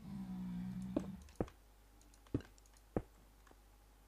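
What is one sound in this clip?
Blocks are placed with short, dull thuds.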